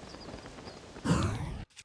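A bird-like creature swoops past with a flapping rush.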